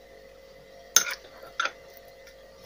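A spoon scrapes and clinks against a bowl.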